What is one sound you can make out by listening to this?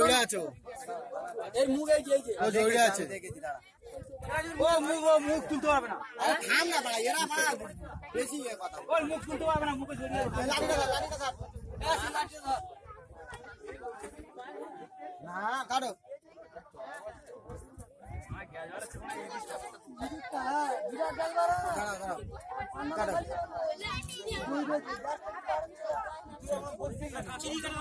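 A crowd of men chatter and call out all around, outdoors.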